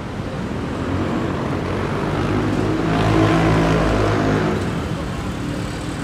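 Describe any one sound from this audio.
A motor vehicle drives past close by, its engine rising and fading.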